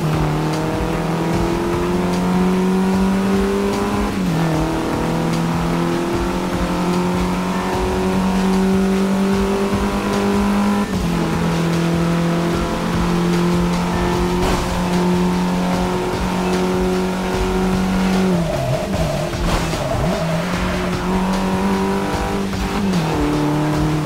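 A car engine roars loudly, climbing in pitch through each gear and dropping at each shift.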